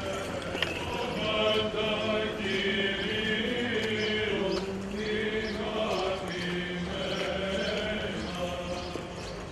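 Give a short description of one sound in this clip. A group of men chants together in a steady, droning tone.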